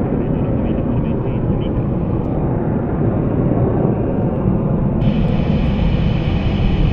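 A jet engine roars loudly overhead, rumbling steadily.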